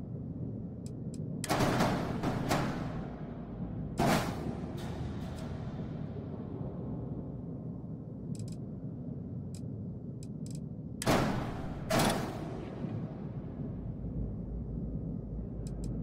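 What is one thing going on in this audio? Short interface clicks tick now and then.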